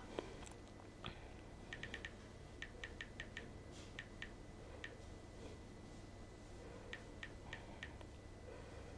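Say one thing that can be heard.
Soft keyboard clicks tick quickly as fingers tap on a phone.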